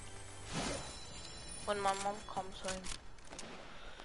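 A chest creaks open with a chiming burst.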